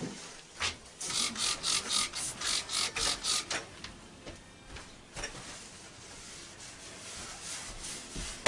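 Objects clatter and rustle on a counter.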